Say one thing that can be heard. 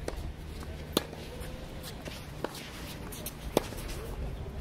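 Tennis balls are struck with rackets, with sharp pops outdoors.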